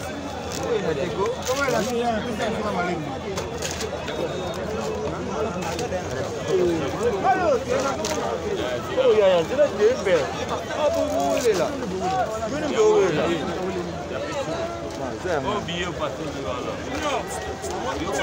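Several men talk over one another with animation, close by.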